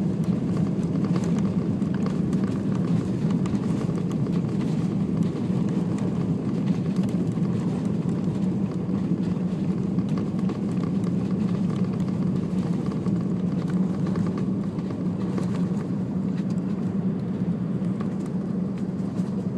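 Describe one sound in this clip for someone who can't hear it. Wheels rumble and rattle over the runway.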